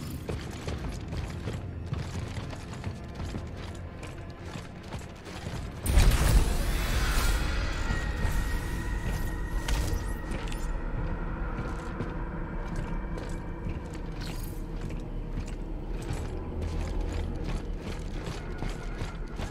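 Heavy boots thud on a metal floor in steady footsteps.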